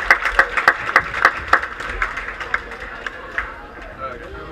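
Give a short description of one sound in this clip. An audience claps and applauds in a large hall.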